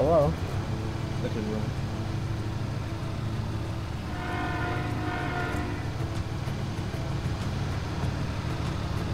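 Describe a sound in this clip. Train wheels clatter over a steel bridge.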